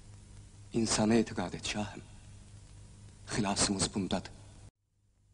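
A man speaks sternly in a deep voice.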